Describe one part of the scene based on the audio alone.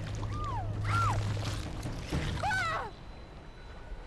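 A shark chomps down with a wet crunch.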